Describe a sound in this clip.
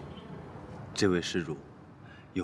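A man speaks calmly and gently nearby.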